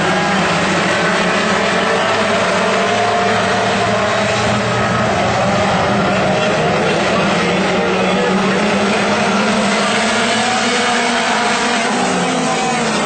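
Several dirt-track modified race cars roar at full throttle around a dirt oval.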